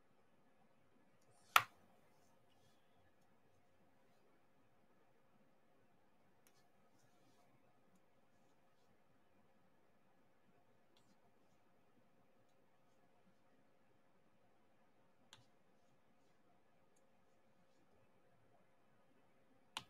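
A plastic pen softly taps and clicks small beads into place.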